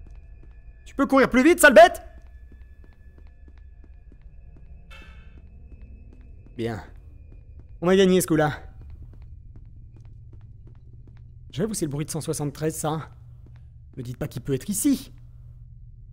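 A young man speaks in short bursts, close to a microphone.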